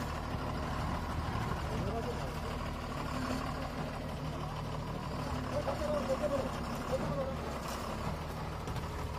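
A heavy truck engine idles with a deep, steady rumble.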